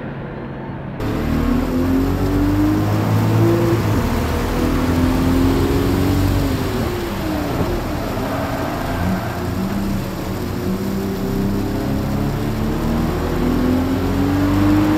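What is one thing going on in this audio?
Rain and spray hiss against a car.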